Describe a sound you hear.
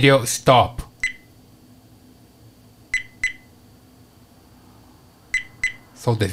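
A small electronic device beeps in short, high tones.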